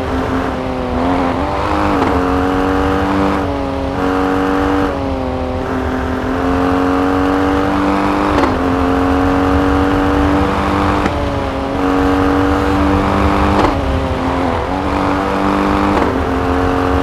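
An SUV engine shifts gears, the revs jumping.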